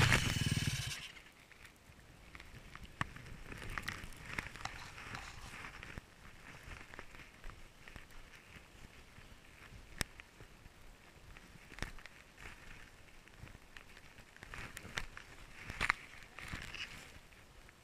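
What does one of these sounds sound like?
Snow crunches and rustles close by as it is pushed and packed.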